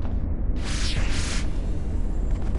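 A magical burst whooshes and sparkles.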